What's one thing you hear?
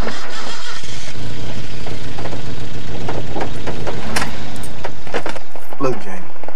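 A car engine rumbles.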